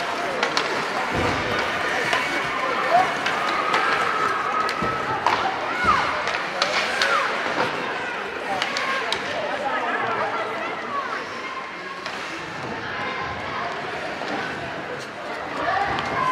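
A crowd of spectators chatters and shouts in an echoing arena.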